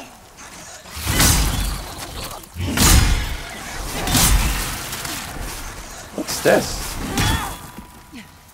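A blade slashes and thuds into a large creature.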